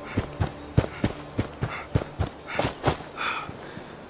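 Footsteps crunch quickly on dry ground.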